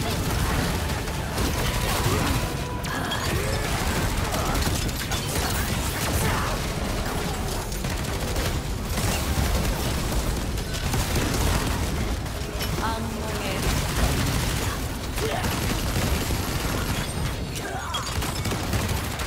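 Fiery explosions burst and rumble.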